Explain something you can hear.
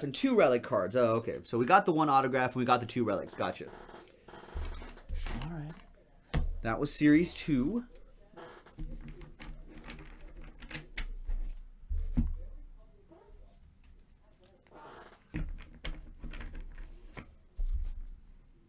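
Cardboard and plastic wrappers rustle and crinkle in hands.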